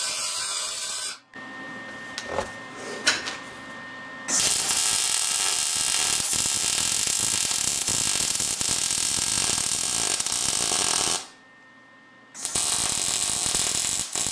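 A welding arc crackles and buzzes loudly.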